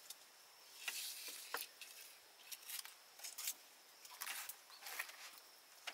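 Grilled fish are moved about on a leaf with light taps and rustles.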